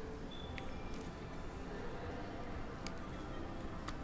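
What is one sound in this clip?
A plastic card sleeve crinkles and rustles in hands.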